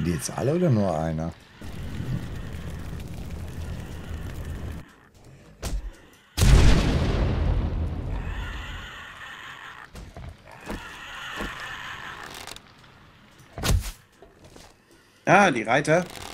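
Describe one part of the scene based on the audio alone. Zombies growl and groan nearby.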